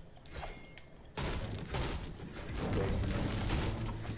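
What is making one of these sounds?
A pickaxe strikes a wooden wall with hollow knocks.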